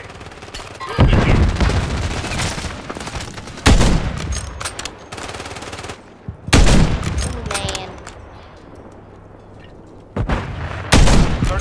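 A rifle fires single loud shots that echo away.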